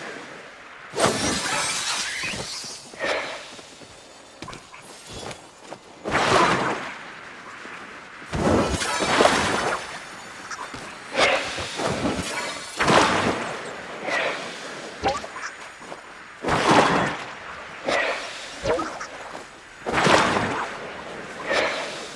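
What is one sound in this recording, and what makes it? Bright magical whooshes burst out again and again.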